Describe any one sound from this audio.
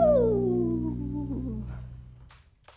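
A saxophone plays a long falling line.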